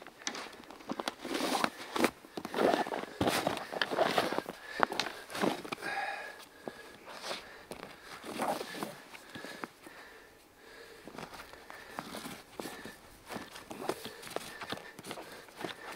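A rope rustles and scrapes against a fabric bag as it is pulled tight.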